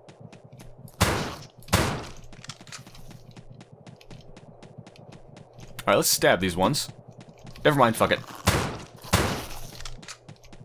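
Gunshots fire in sharp, loud bursts.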